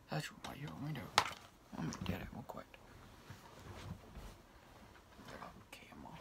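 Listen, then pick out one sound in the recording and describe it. Objects knock and rustle as a young man handles them.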